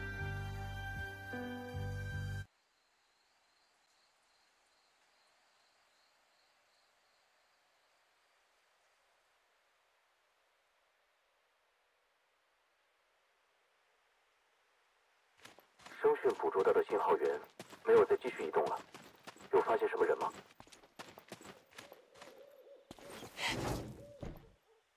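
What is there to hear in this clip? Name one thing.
Footsteps run over ground.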